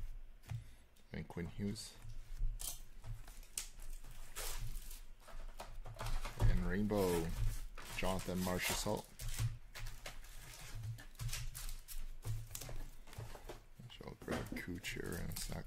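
Trading cards rustle and click as they are shuffled in the hands.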